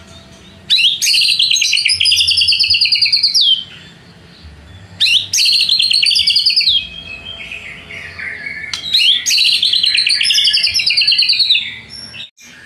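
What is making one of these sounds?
A songbird sings close by in loud, rapid trilling bursts.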